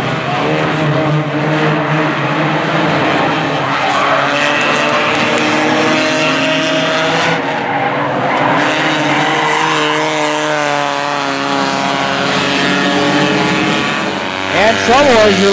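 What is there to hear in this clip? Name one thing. Several race car engines roar and drone as the cars lap a track.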